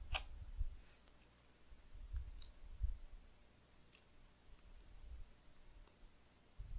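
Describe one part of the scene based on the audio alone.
Fingers peel a paper sticker from its backing with soft crinkles and ticks.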